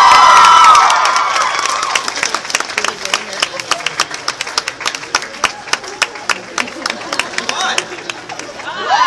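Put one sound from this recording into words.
An audience claps and cheers.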